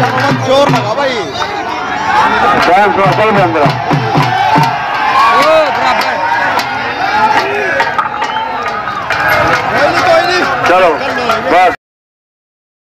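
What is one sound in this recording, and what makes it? A large crowd murmurs and cheers outdoors.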